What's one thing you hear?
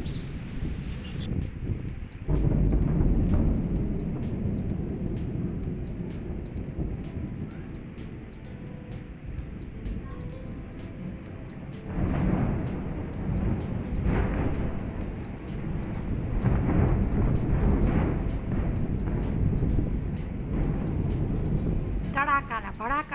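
Wind blows in strong gusts outdoors, rumbling against the microphone.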